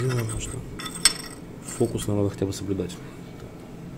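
A clay shard scrapes and taps on a metal plate.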